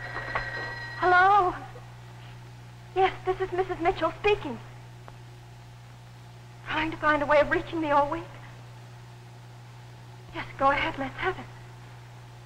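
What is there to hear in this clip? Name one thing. A woman talks into a telephone.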